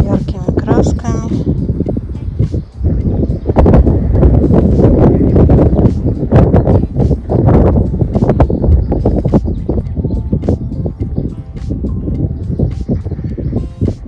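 Wind gusts and rumbles across the microphone outdoors.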